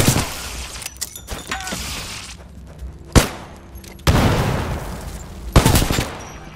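Gunshots ring out in loud, sudden bursts with a short echo.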